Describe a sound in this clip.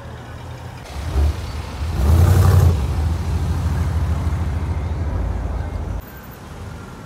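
A hot rod engine revs loudly as it drives off.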